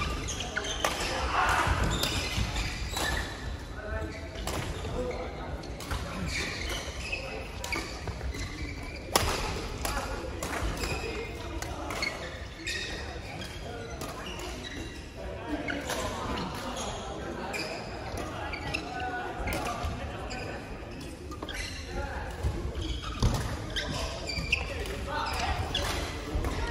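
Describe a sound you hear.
Shoes squeak and thud on the court floor.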